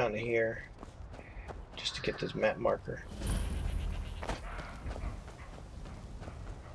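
Footsteps tread on grass and stone.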